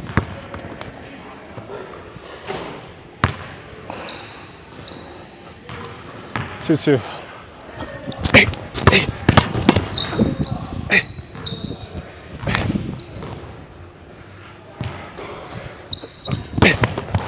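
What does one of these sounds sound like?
A basketball bounces on a hard court floor in an echoing hall.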